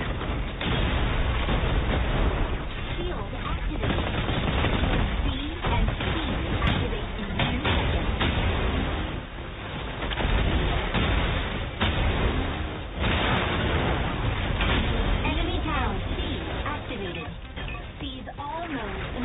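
Laser blasts and explosions crackle and boom in rapid succession.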